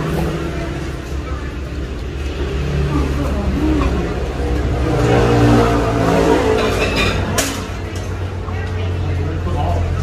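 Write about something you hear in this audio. Young women slurp noodles close by.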